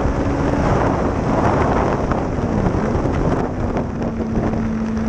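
Wind rushes loudly past, buffeting the microphone.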